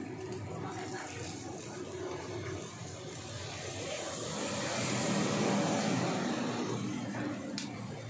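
Meat sizzles over the fire.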